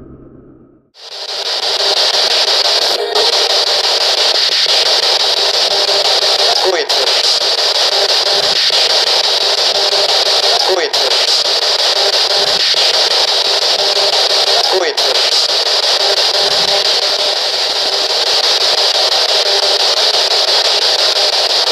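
A radio scanner blares loud, choppy static that sweeps steadily.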